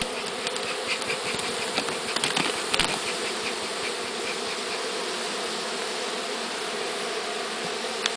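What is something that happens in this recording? A bee smoker puffs with soft hisses of air.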